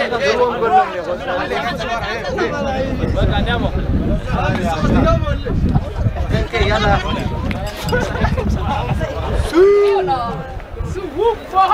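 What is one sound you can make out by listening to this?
A crowd of young men cheers and chants loudly outdoors.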